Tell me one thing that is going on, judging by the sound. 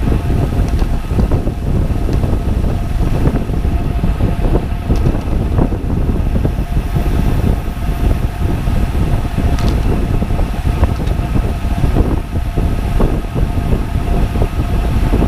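Wind buffets loudly against a moving microphone.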